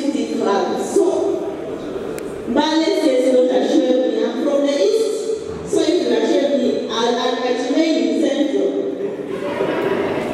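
A young woman speaks with animation through a microphone.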